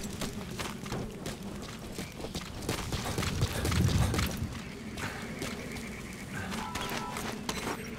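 Boots crunch on dry gravel as a soldier runs.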